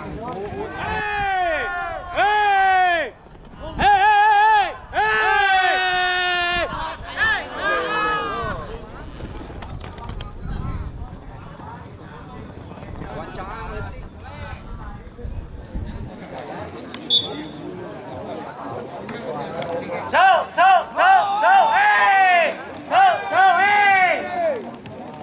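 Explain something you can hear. Several men shout excitedly outdoors.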